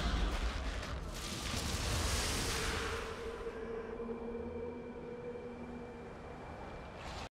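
Heavy armoured footsteps thud on stone.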